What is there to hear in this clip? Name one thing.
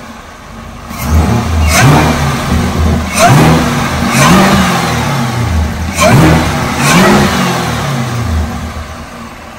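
A car engine revs sharply several times.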